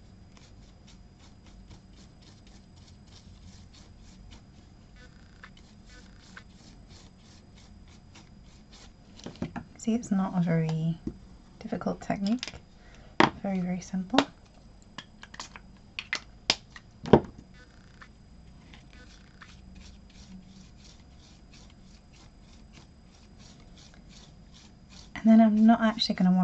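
A brush dabs and scrapes on paper.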